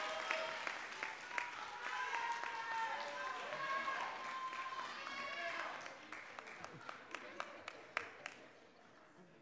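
A crowd claps in a room.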